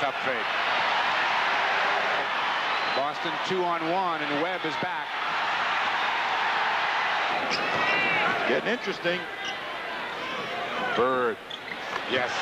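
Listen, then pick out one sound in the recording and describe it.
A large crowd cheers and roars in an echoing arena.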